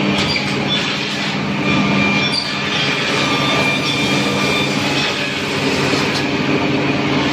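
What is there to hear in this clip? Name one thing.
A wooden panel scrapes as it slides through a machine.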